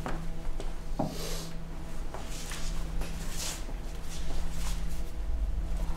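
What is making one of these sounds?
Coat fabric rustles.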